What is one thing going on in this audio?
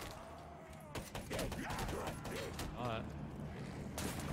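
Gunfire bursts in rapid shots.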